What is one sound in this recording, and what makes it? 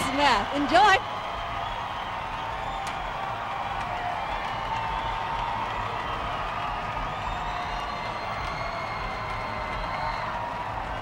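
A crowd cheers and shouts in the distance.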